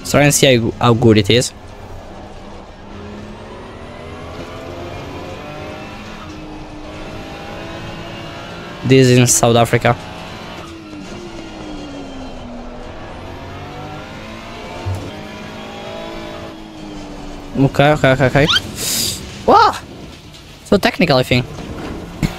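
A race car engine revs high and drops as the gears change.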